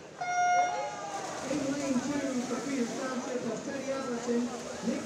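Swimmers dive and splash into the water.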